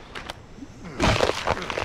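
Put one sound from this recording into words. A blade cuts wetly into an animal carcass.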